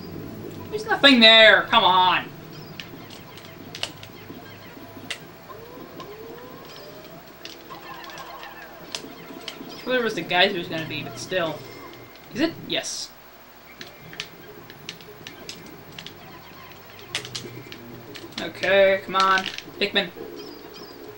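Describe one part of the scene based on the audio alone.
Small game creatures cry out in squeaky, rising voices through a television speaker.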